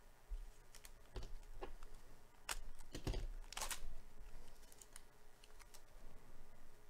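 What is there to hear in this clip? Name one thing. Plastic wrapping crinkles and tears as a pack is opened.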